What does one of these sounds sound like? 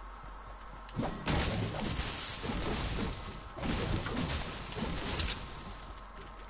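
A pickaxe repeatedly chops into a hedge with leafy crunches.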